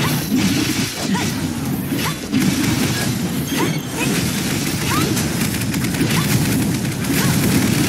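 Sword slashes and energy blasts strike rapidly, with bursts of impact noise.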